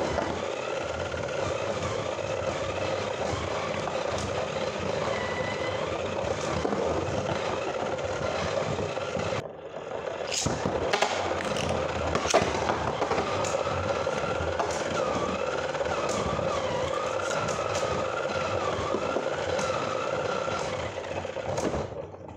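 Spinning tops whir steadily inside a plastic arena.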